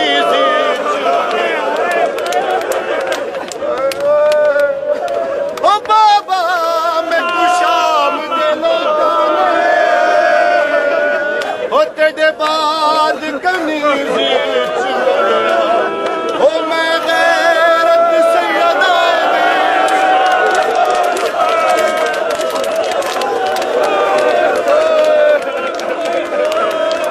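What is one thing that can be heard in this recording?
A young man chants loudly and with feeling, close by.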